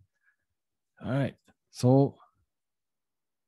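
A young man speaks briefly and clearly into a microphone.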